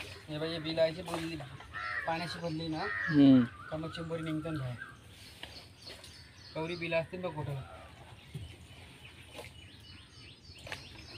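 A paddle splashes softly in calm water.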